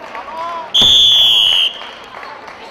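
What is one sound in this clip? A referee's whistle blows one sharp, loud blast.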